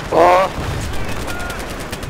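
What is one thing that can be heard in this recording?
A gun fires a loud burst.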